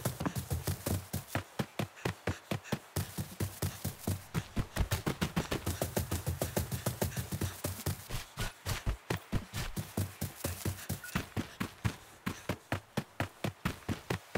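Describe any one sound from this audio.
Footsteps run quickly and steadily over dirt and grass.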